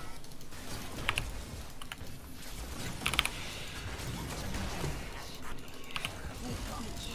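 Sharp magical impacts strike in quick bursts.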